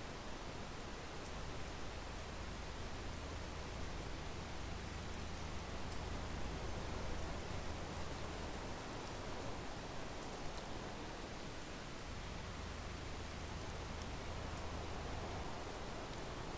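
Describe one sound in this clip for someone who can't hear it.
A combine harvester engine drones steadily at close range.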